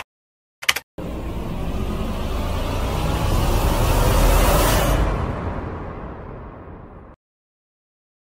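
A loud whoosh swells and then fades away.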